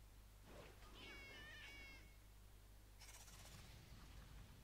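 Short magical battle effects chime and whoosh.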